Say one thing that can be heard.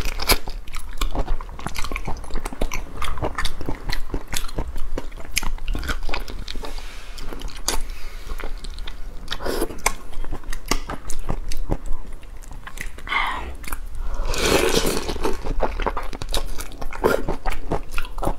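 Shrimp shells crackle and crunch as fingers peel them close by.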